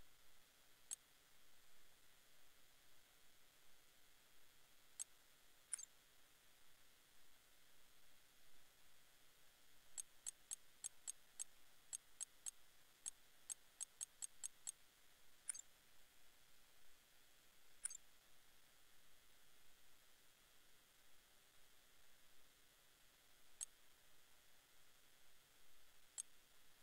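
Short, high menu clicks tick now and then, with quick runs of clicks in the middle.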